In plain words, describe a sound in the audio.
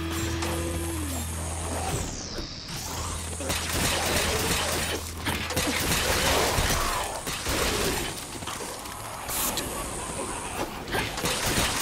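A metal rail scrapes and hisses as a game character grinds along it.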